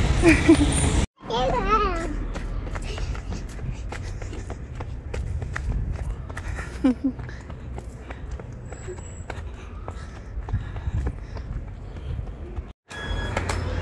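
Sandals slap softly on concrete as a small child walks.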